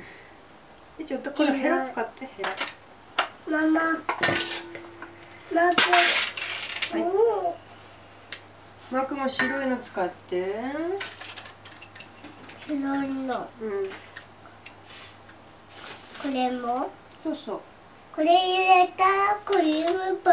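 Young children talk and chatter close by in high voices.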